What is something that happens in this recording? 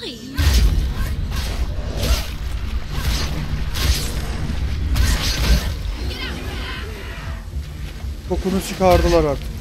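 Heavy booming blasts and slashing swords crash in a game's fight.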